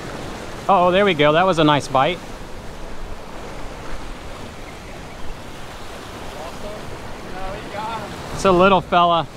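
Waves splash against rocks.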